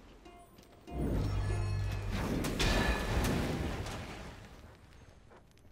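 Magic blasts whoosh and crackle in a fight in a game.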